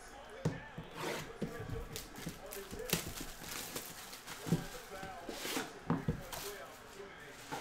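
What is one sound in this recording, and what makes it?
Plastic wrap crinkles as hands tear it off a box.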